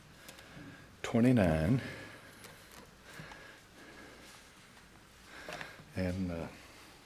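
An elderly man speaks slowly and solemnly into a microphone, with pauses.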